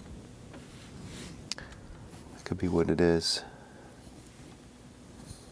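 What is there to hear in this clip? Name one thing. A small metal device rattles and clicks as it is turned over in the hands.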